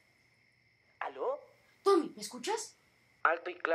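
A young boy asks a question into a phone, close by.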